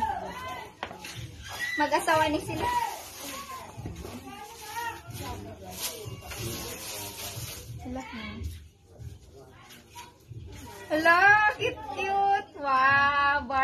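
Plastic wrapping rustles and crinkles as a gift is unwrapped.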